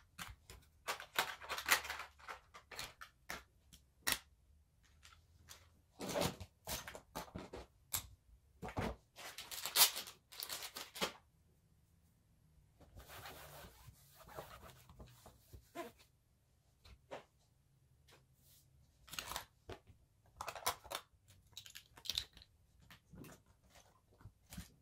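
Small plastic cosmetic items clatter and click as a hand sorts them.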